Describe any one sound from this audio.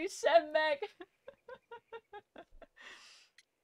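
A young woman laughs softly in short bursts.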